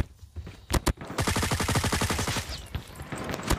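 Rapid gunfire bursts from an automatic rifle close by.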